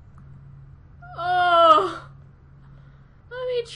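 A young woman exclaims excitedly in a high voice, close to a microphone.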